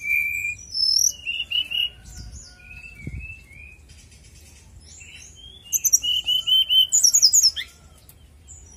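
A caged songbird sings whistled, warbling phrases outdoors.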